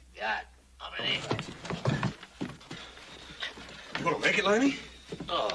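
Men grunt while struggling.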